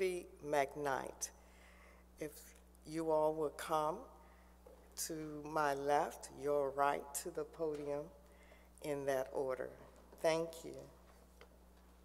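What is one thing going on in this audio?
An elderly woman speaks with animation through a microphone.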